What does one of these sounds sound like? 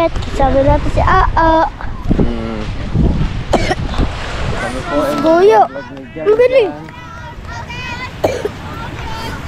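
Young boys talk and laugh close by.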